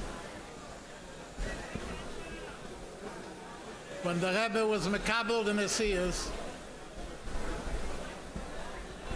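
An elderly man speaks slowly into a microphone.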